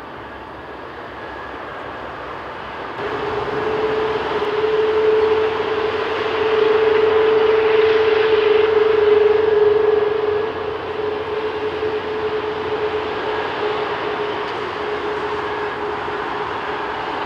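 Jet engines roar and whine loudly as a large airliner taxis close by.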